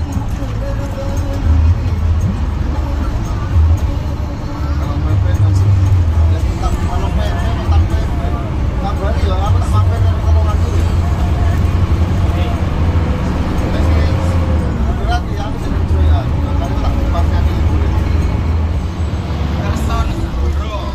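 The bus rattles and shakes as it rolls along the road.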